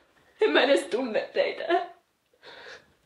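A young woman speaks loudly and with animation close by.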